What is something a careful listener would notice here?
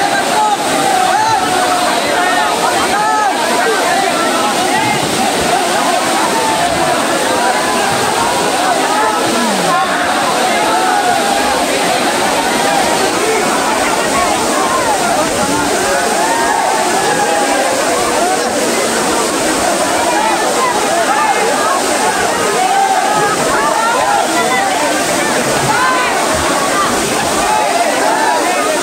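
A waterfall pours and splashes steadily outdoors.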